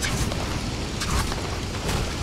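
A quick whoosh sweeps past as a figure dashes through the air.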